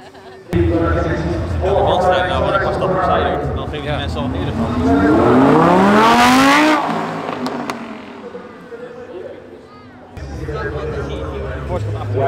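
A crowd cheers and shouts nearby.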